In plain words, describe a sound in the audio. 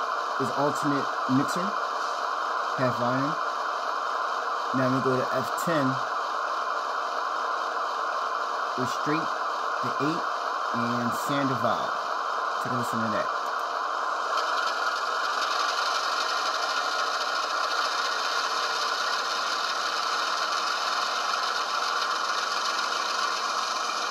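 A model diesel locomotive's engine rumbles steadily at idle.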